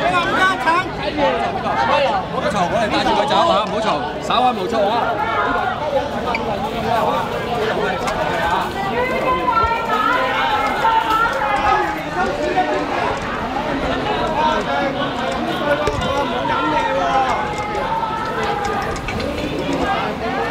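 A crowd of men and women talks and shouts close by, outdoors.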